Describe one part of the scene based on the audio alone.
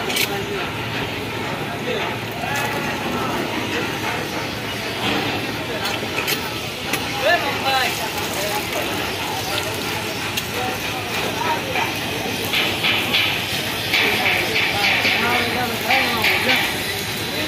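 Men talk at a distance outdoors.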